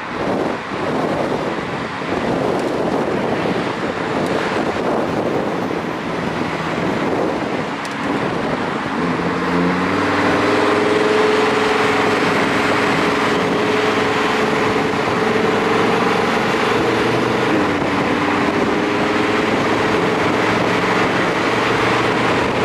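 Tyres roar on asphalt.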